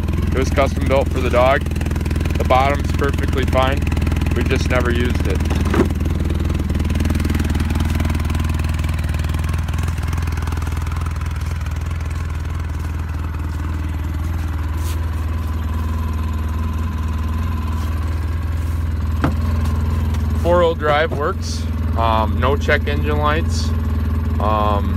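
A small vehicle engine idles with a steady low rumble.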